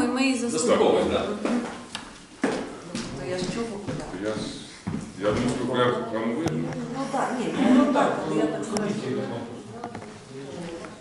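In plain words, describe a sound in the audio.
A woman speaks calmly.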